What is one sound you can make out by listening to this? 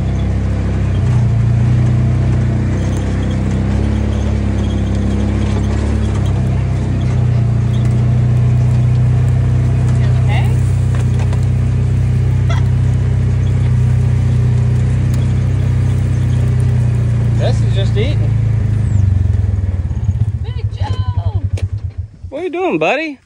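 An off-road vehicle's engine rumbles steadily as it drives over rough ground, then slows to a sputtering idle.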